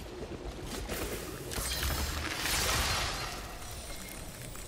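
An electric blast crackles loudly.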